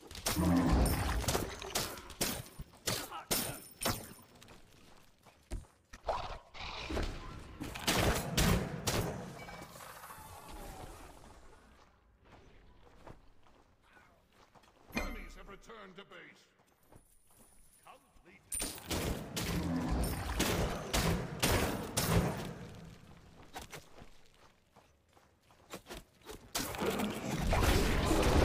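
Game sound effects of spells and hits burst in quick succession.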